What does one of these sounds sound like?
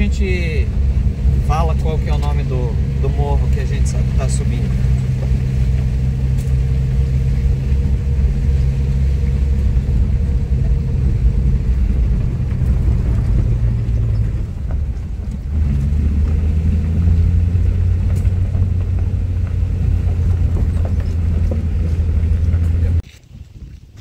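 Tyres crunch and rumble over a dirt road.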